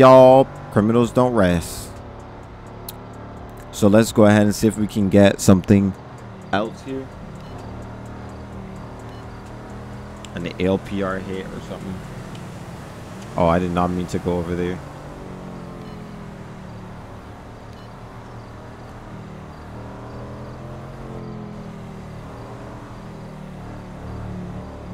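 A sports car engine hums steadily as the car drives along a road.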